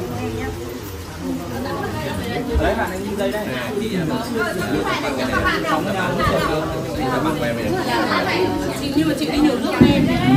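Several young men talk and laugh together close by.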